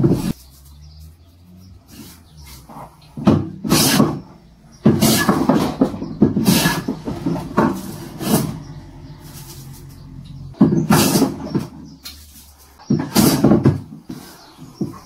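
A hand plane shaves wood in repeated rasping strokes.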